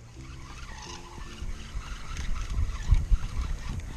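Water splashes as a fish is released into a river.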